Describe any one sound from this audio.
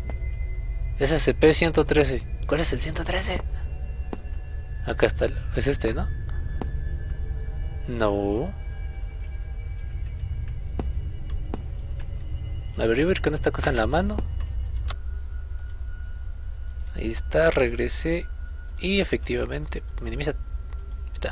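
A young man talks with animation through a microphone, close up.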